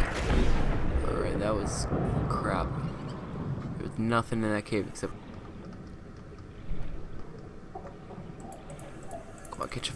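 A muffled underwater rumble of swirling water surrounds the listener.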